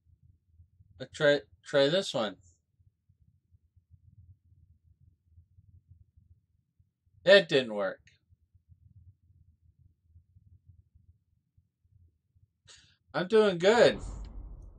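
A middle-aged man speaks close to a microphone in short bursts, with pauses between them.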